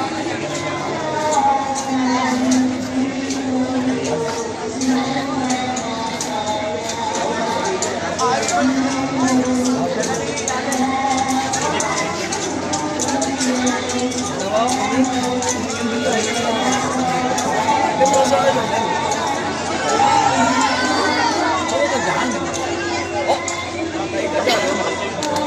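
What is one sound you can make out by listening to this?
A large crowd chatters and calls out all around, outdoors.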